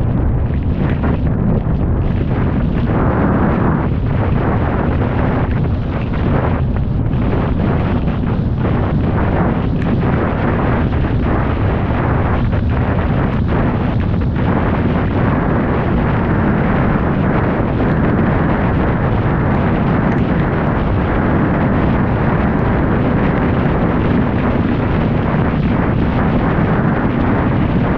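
Strong wind roars loudly outdoors.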